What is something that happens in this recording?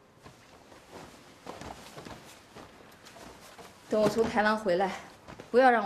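Clothes rustle as they are folded.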